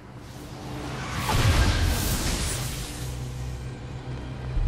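An electric blast crackles and roars.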